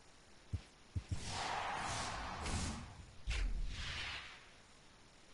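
A loud whooshing sound effect plays as a card pack bursts open.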